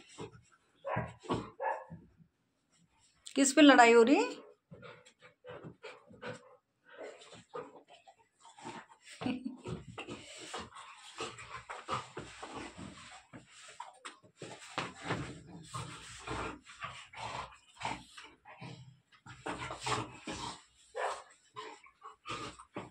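Dogs' paws scuffle and patter on a rug.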